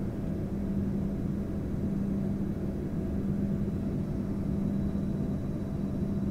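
A jet engine roars steadily, heard from inside the cabin.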